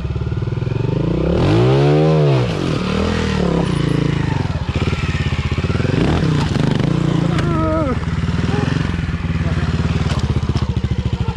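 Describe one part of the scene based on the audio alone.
A motorcycle engine idles and revs in bursts.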